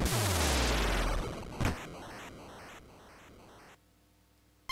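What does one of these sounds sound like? A loud retro game blast rumbles and fades.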